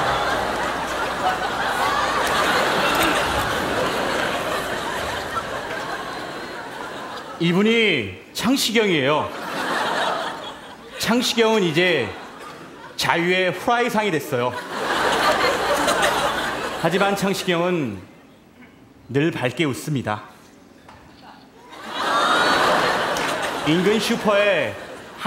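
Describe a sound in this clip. An audience laughs and applauds loudly in a large hall.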